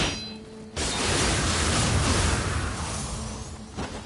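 A blade swishes and strikes with a burst of noise.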